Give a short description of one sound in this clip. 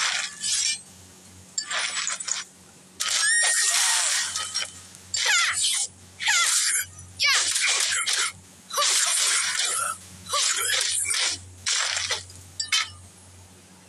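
Weapons clash and strike in a fast fight.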